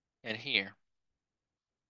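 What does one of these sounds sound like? A man speaks a few words briefly through a microphone.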